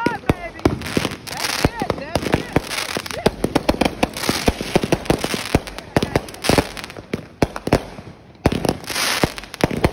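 Fireworks bang and crackle loudly overhead, over and over.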